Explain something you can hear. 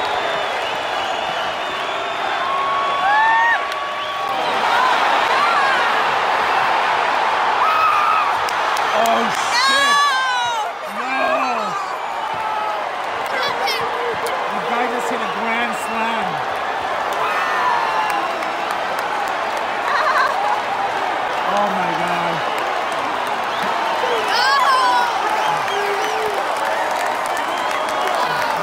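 A large stadium crowd cheers and roars, echoing.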